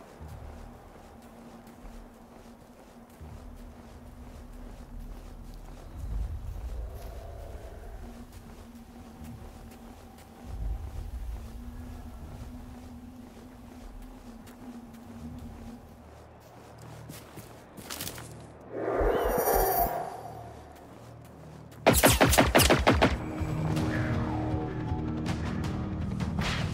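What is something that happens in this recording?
Footsteps tread steadily over grass and dirt.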